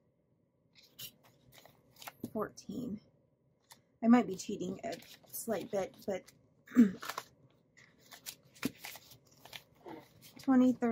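Paper banknotes rustle and crinkle as they are handled and counted.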